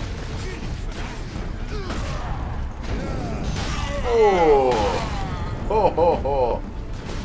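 Game combat sounds rumble and clash with weapon blows.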